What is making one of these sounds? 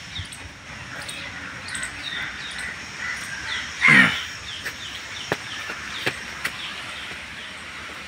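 Footsteps scuff on stone steps outdoors.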